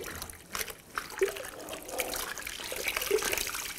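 Water sloshes in a bucket as a cloth is dipped.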